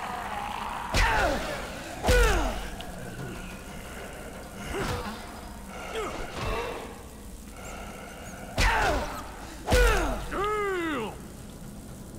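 Creatures groan and shriek as they are struck.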